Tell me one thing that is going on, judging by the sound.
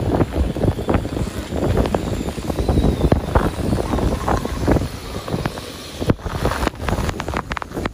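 Rain patters down.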